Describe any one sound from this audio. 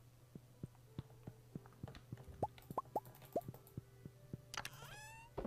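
Footsteps tap lightly across a wooden floor.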